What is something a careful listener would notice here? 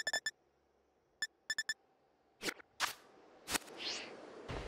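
Game menu clicks beep in quick succession.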